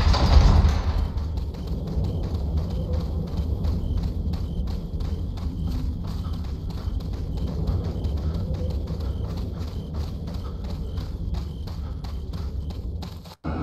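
Footsteps crunch steadily over dirt and dry leaves.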